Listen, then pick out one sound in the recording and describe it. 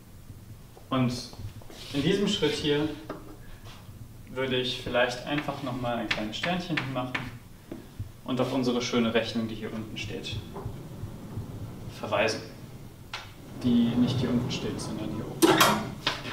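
A young man speaks calmly, lecturing in an echoing room.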